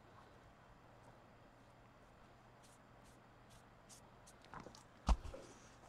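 A cloth rubs softly over a smooth, hard surface.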